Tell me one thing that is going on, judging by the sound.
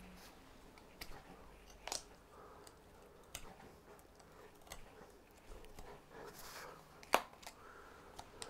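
Small scissors snip and click against wood.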